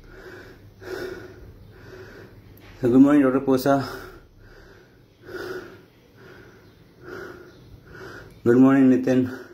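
A man speaks close up, calmly and in bursts.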